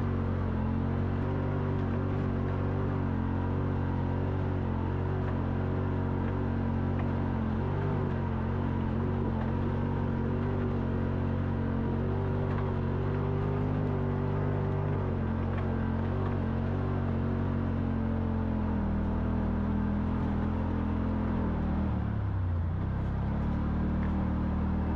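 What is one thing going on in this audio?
An engine hums steadily while climbing, then shifts in pitch near the end.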